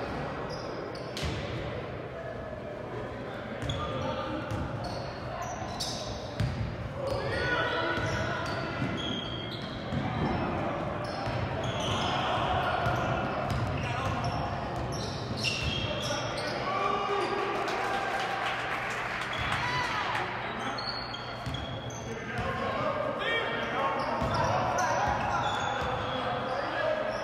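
Spectators cheer and shout in the stands.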